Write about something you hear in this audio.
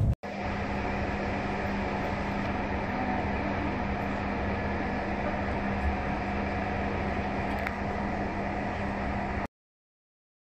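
A high-speed train rumbles along at speed, heard from inside a carriage.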